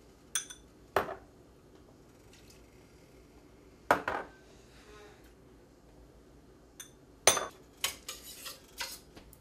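A metal pot clanks on a stove.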